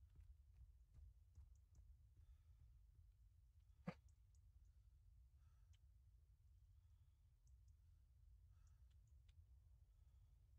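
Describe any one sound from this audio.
Footsteps crunch softly through grass and gravel.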